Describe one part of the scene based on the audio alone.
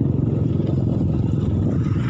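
A motorbike engine idles nearby.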